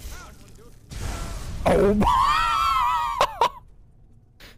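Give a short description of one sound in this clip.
A fiery blast explodes with a roar.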